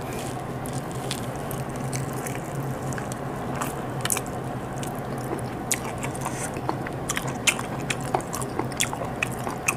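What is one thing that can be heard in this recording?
A woman chews food with loud smacking sounds close to a microphone.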